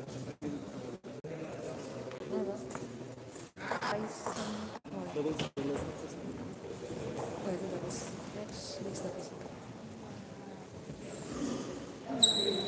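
Several men talk in a low murmur in an echoing hall.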